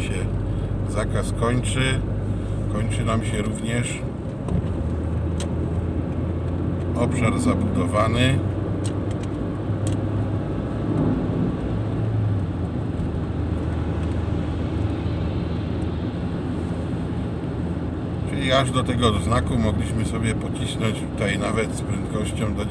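Tyres roll on smooth asphalt.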